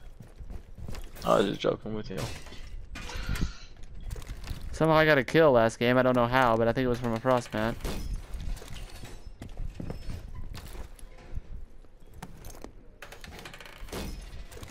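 A metal shield clanks as it is unfolded and set down.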